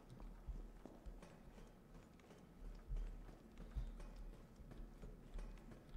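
Footsteps clump on metal stairs.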